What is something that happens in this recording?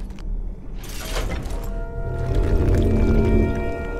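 A heavy stone mechanism grinds and rumbles into motion.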